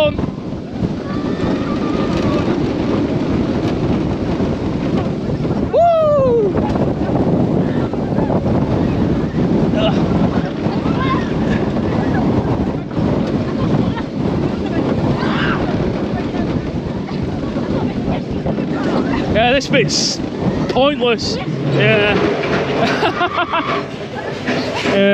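Wind rushes loudly past a roller coaster as it speeds along.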